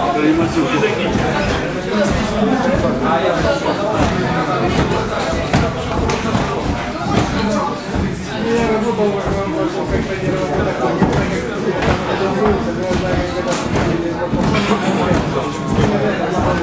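Boxing gloves thump against padded mitts in quick bursts.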